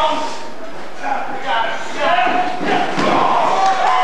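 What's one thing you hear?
A heavy body thuds onto a ring mat.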